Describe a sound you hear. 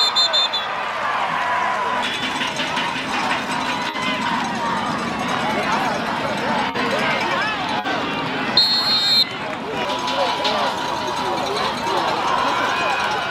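A stadium crowd cheers and shouts outdoors.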